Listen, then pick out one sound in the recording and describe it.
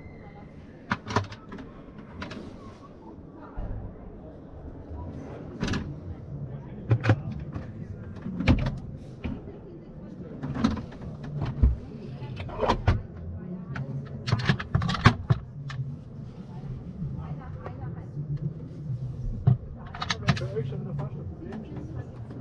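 Drawers and cupboard doors slide open and shut with soft knocks and clicks.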